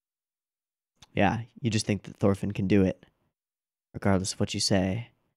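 A young man speaks close into a microphone, calmly and with animation.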